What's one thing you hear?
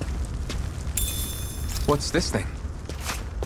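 A soft chime rings as an item is picked up.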